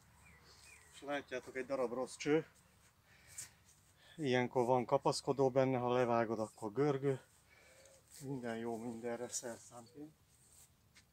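A middle-aged man speaks calmly and close by, outdoors.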